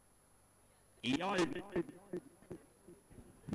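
A man speaks loudly nearby.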